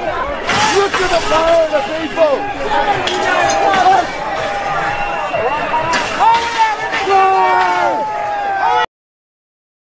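Metal barriers rattle and clang as they are pushed.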